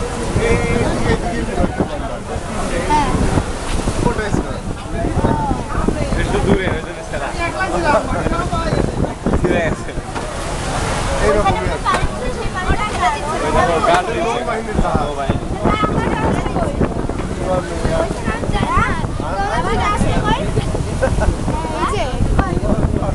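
A crowd of men chats nearby.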